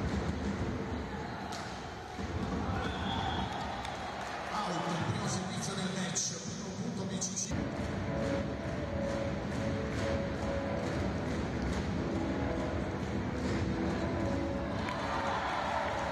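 A volleyball is struck hard with thuds.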